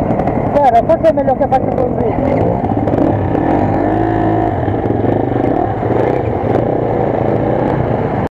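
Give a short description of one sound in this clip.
Dirt bike engines idle and rumble close by.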